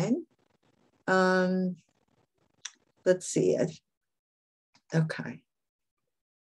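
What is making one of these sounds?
An older woman speaks calmly and haltingly over an online call.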